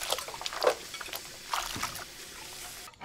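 Ceramic plates clink against each other.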